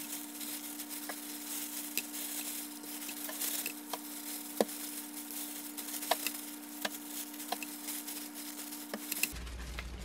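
Plastic gloves rustle while handling raw meat.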